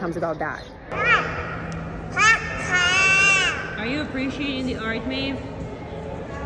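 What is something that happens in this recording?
A toddler girl squeals and babbles in high-pitched bursts nearby, in an echoing hall.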